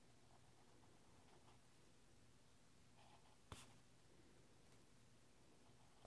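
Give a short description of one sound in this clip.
A pen scratches softly across paper, close by.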